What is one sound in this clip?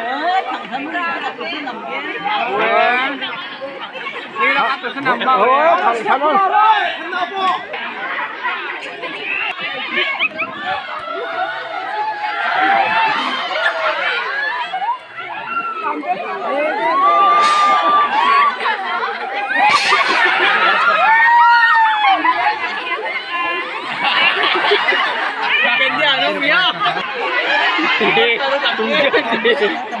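A large crowd of men, women and children chatters and shouts outdoors.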